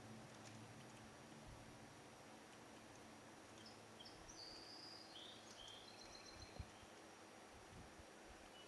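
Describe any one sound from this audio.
A man speaks calmly and quietly close to a microphone.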